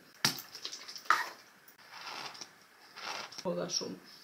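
Lotion squirts from a bottle into a hand.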